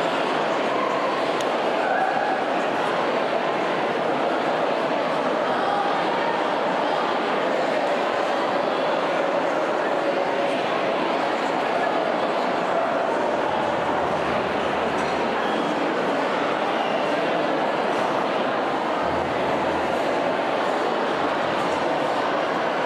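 A large crowd of men and women chatters loudly in an echoing hall.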